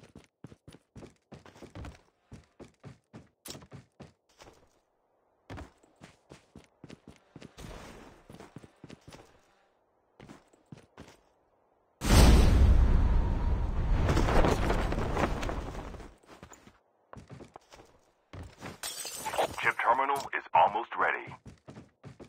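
Footsteps thud quickly on wooden boards and ground.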